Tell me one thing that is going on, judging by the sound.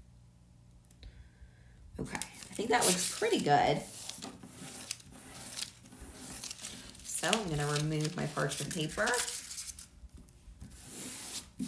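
A plastic sheet rustles and crinkles under rubbing hands.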